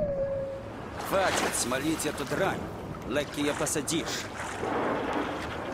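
Water splashes as a diver breaks the surface.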